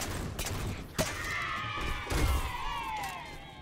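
A heavy blow lands with a sharp crash.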